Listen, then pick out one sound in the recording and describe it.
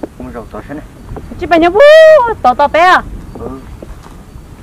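A young woman shouts loudly and angrily close by.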